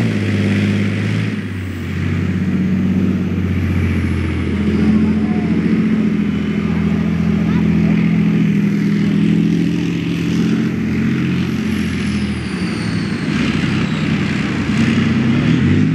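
A heavy tank engine roars and rumbles close by.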